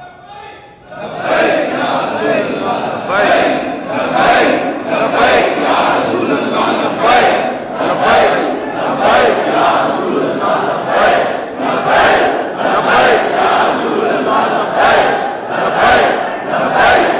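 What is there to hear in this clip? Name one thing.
A large crowd of men chants and cries out together with raised voices.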